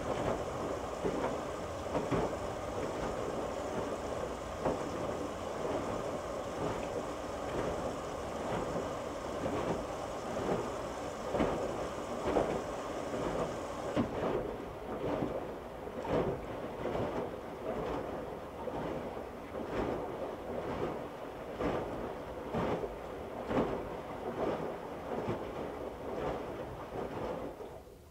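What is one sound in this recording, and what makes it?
Water sloshes and splashes as the wet laundry tumbles.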